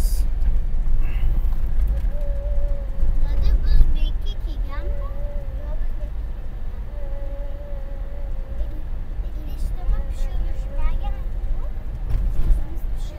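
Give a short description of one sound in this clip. A vehicle engine rumbles low as it drives slowly.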